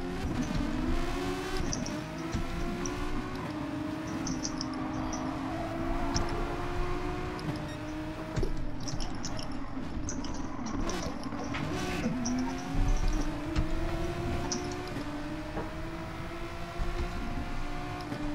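A racing car engine roars, its pitch climbing and dropping back with each gear change.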